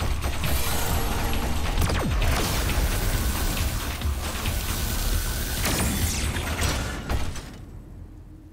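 A powerful energy blast roars and crackles.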